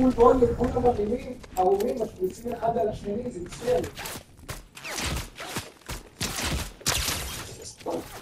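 Footsteps run over grass and pavement.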